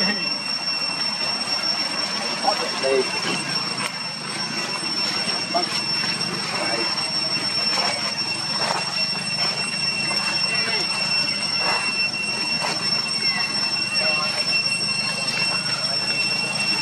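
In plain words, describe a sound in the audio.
Dry leaves rustle and crunch under a monkey's steps.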